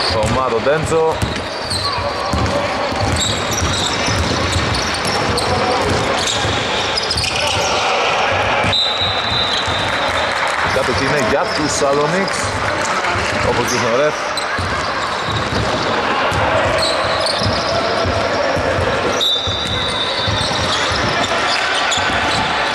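A basketball bounces on a wooden court in a large echoing hall.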